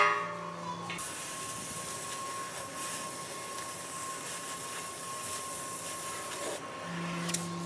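A cutting torch hisses and roars steadily.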